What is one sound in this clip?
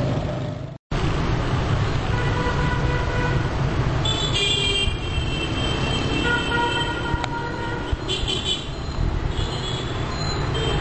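A van engine hums as the van drives slowly past.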